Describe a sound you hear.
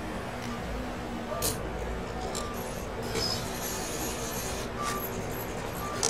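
A cash machine whirs as it dispenses banknotes.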